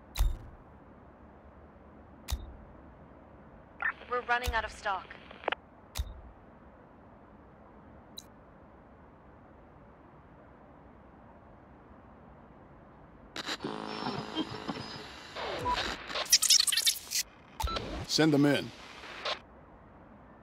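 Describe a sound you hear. Short game interface clicks and chimes sound now and then.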